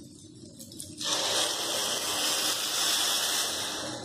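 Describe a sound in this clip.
Liquid sizzles loudly as it is poured into a hot pan.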